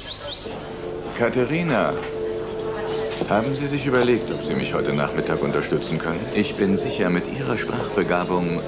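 An elderly man speaks firmly and clearly close by.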